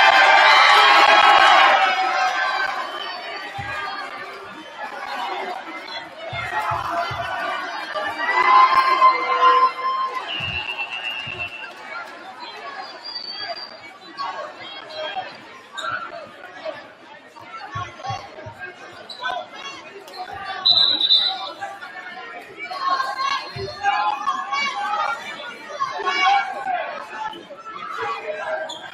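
A large crowd cheers and chatters in an echoing gym.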